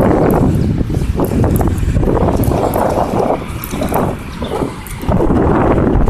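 Wind rumbles and buffets loudly against the microphone outdoors.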